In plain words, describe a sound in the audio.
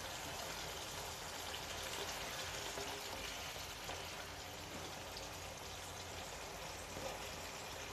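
A spatula scrapes and stirs through food in a pan.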